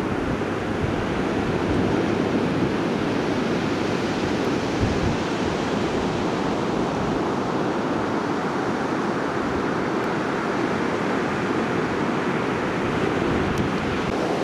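Foaming surf rushes and hisses over shallow water.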